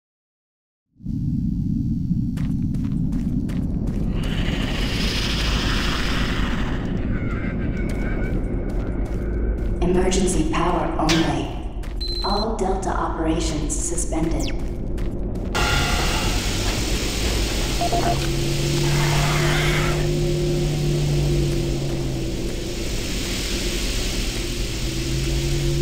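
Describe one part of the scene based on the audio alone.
A low, steady mechanical hum drones throughout.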